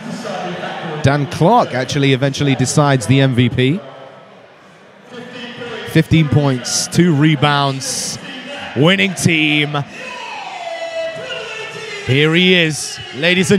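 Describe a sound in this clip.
A middle-aged man answers into a microphone.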